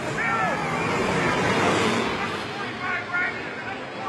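Motorcycle engines roar and rev.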